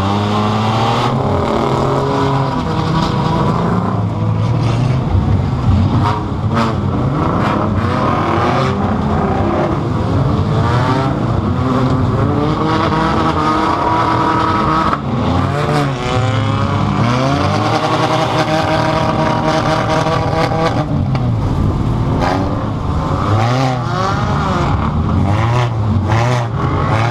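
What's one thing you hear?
A car engine roars and revs loudly up close.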